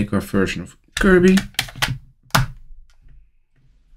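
A game cartridge slides in and clicks into place.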